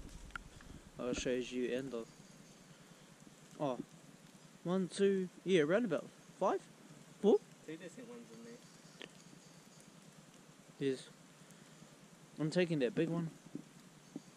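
An elderly man speaks calmly close by, outdoors.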